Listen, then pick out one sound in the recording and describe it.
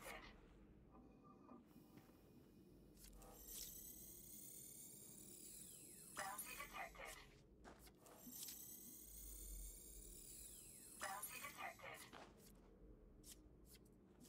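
A spacecraft engine whooshes and hums in high rising sweeps.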